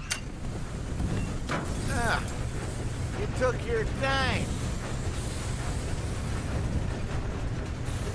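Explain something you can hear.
Machinery hums low and steadily.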